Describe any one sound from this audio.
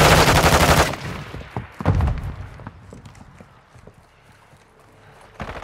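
Footsteps run quickly over wooden boards.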